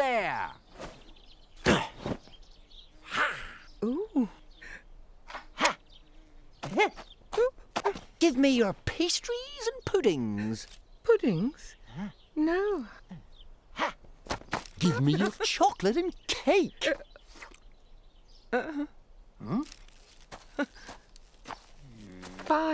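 A man speaks with animation in a cartoon voice.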